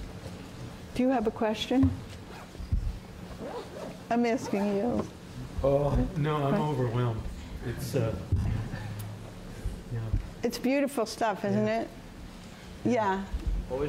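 An elderly woman speaks with animation in a large room.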